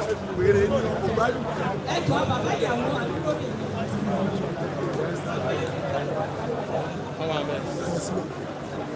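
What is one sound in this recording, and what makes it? A crowd of men and women talks and shouts outdoors close by.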